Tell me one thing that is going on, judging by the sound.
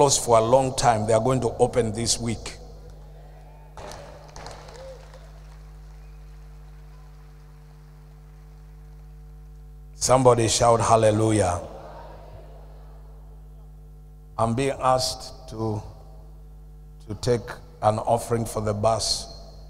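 A middle-aged man speaks with animation into a microphone over a loudspeaker system, with pauses between phrases.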